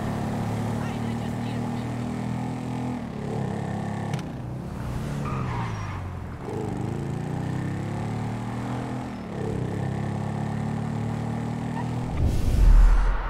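A motorcycle engine revs and hums, rising and falling in pitch as it speeds up and slows down.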